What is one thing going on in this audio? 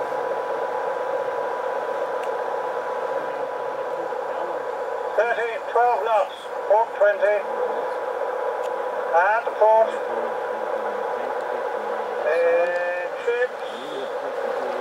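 A small model boat motor whines steadily.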